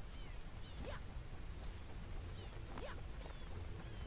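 Quick rising whooshes sound as a cartoon character jumps.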